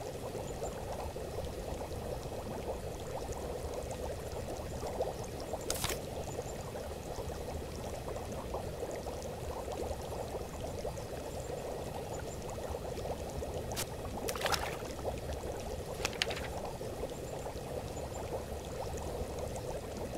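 A cauldron bubbles steadily.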